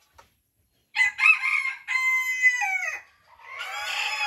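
A rooster crows loudly nearby.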